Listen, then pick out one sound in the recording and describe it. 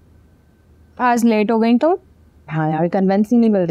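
A second young woman answers calmly nearby.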